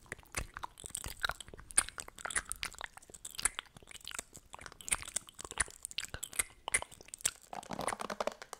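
Lip gloss wands click and tap close to a microphone.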